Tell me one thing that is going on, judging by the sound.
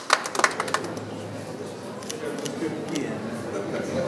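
Adults chat quietly in an echoing room.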